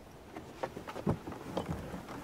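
A heavy wooden chest thumps down onto a deck.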